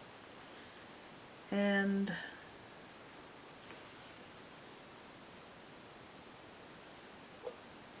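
Cloth rustles softly as hands handle it.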